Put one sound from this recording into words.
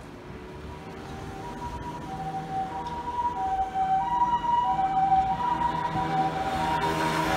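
An ambulance siren sounds a repeating two-tone call, growing louder.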